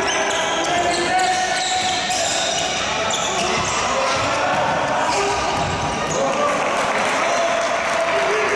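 Men shout to each other across a large echoing hall.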